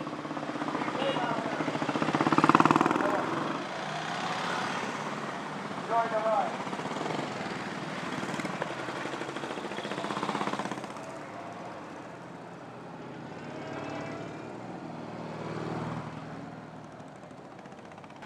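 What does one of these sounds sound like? Motorcycle engines rumble and rev as bikes ride past one by one.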